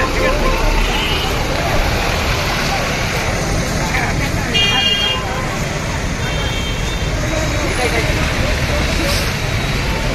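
A car engine idles and rumbles as a vehicle creeps forward.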